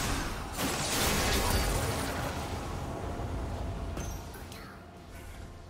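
Spell effects crackle and whoosh during a game fight.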